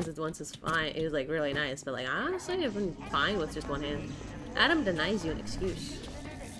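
A young woman talks animatedly into a microphone.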